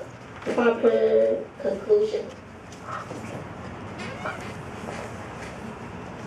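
A woman reads aloud into a microphone, heard through a loudspeaker in a room.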